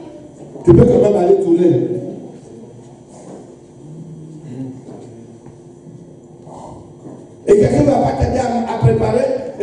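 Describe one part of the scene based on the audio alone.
A man preaches loudly and with passion through a microphone in a large room.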